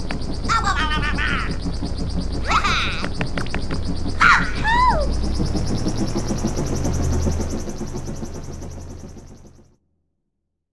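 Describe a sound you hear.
An airship's engine rumbles low and steadily, then fades away.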